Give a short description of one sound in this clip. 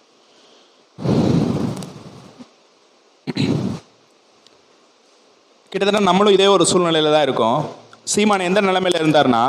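A man sings in a melodic chant through a microphone, heard close and amplified.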